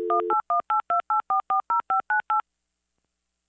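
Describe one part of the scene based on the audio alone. Touch-tone beeps dial a telephone number quickly.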